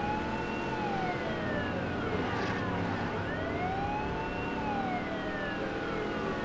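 A siren wails steadily, rising and falling in pitch.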